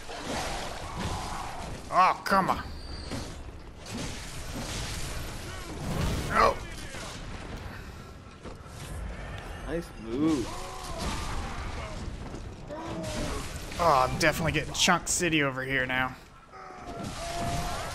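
Blades slash and clash in a fight.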